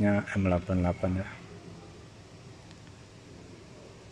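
Plastic wrapping rustles and crinkles as a hand handles it.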